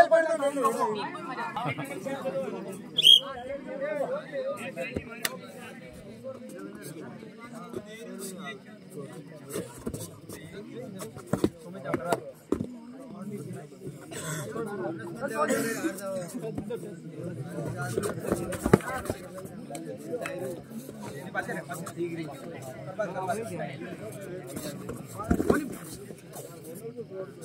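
A crowd of young men talk and shout outdoors.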